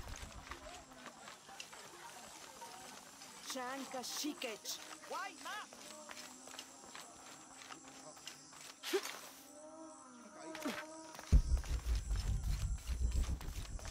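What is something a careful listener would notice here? Footsteps run quickly over dirt and stone.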